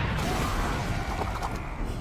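A building crashes down in a rumbling blast of debris.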